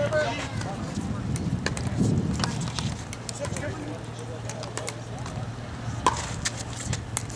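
Paddles pop sharply against a plastic ball in a rally outdoors.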